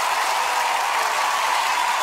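Young men shout with excitement.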